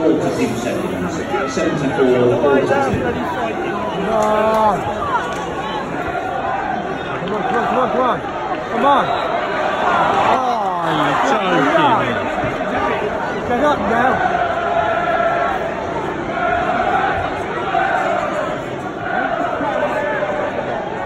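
Men in the crowd shout nearby.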